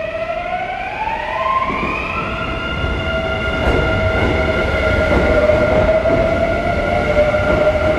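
A train's electric motor whines, rising in pitch as the train pulls away.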